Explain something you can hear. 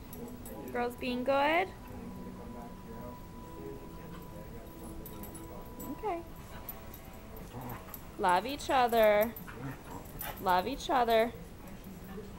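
A dog whines and yelps in short high bursts.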